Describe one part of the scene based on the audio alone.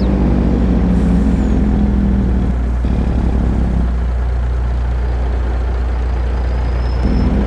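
A heavy diesel engine rumbles steadily at low revs.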